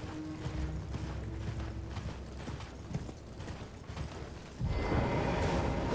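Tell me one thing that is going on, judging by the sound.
Horse hooves thud steadily at a gallop over soft ground.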